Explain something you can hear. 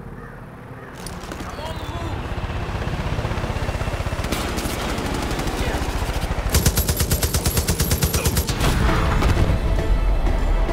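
A helicopter's rotor thumps and grows louder as it approaches.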